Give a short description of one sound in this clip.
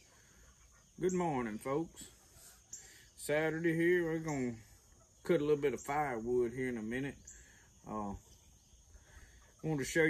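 A man talks calmly up close.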